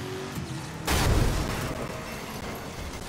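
A car crashes into another car with a loud bang.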